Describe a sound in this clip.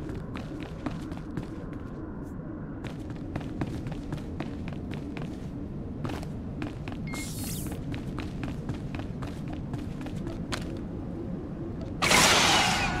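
Footsteps thud quickly on a hard floor as a person runs.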